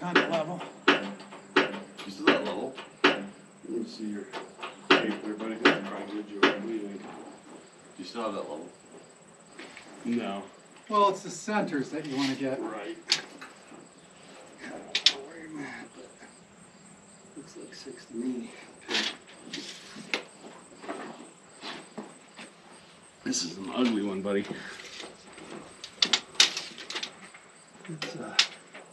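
A man talks casually outdoors, close by.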